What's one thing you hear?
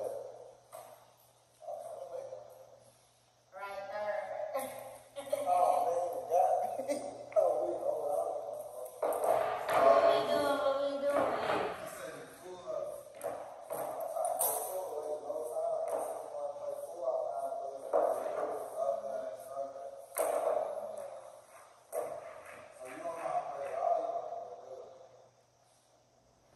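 A young man talks with animation nearby.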